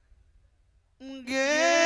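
A man sings loudly in a high, wavering voice.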